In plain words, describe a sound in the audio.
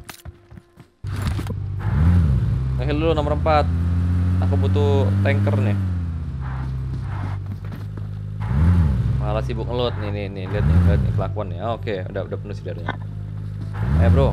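A vehicle engine roars and revs.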